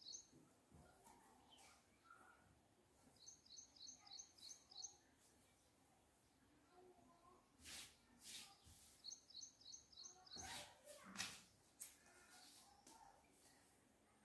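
Cloth rustles as it is folded and smoothed.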